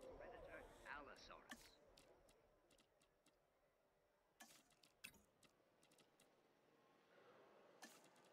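Soft interface clicks sound as menu items are picked.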